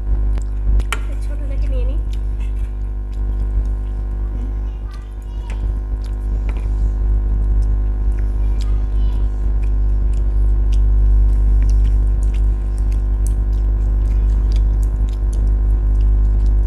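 A man and a woman chew food loudly and wetly, close to a microphone.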